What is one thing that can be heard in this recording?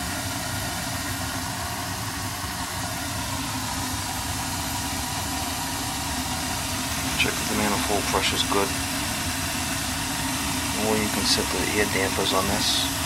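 A furnace hums steadily close by.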